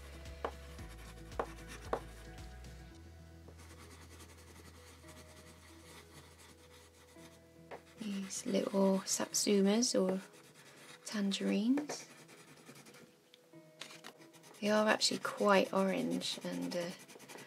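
An oil pastel scrapes softly across paper.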